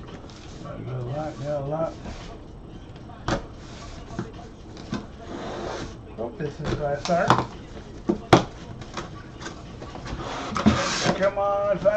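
A cardboard box scrapes and thumps as it is handled.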